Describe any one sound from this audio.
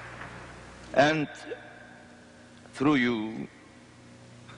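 An elderly man speaks slowly into a microphone, heard through loudspeakers in a large echoing hall.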